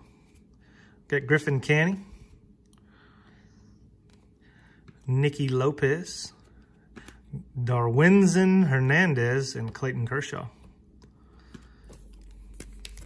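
Trading cards rustle and click softly as they are handled.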